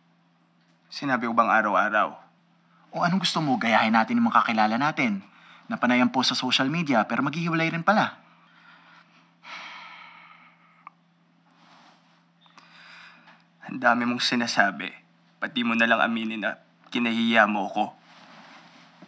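A young man speaks softly and casually nearby.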